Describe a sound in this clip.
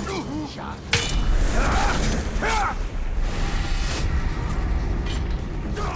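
A body drops heavily to the ground.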